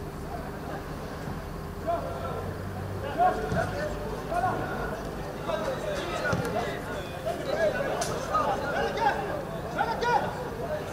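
Men shout to each other across an open pitch.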